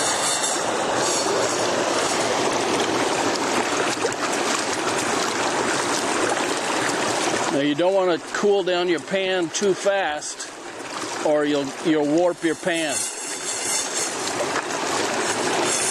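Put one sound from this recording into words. A stream rushes and splashes steadily.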